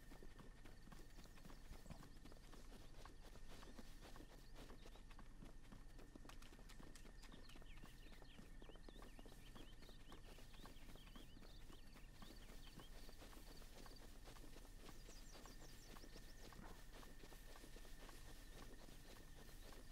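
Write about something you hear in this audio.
Quick footsteps rustle through grass.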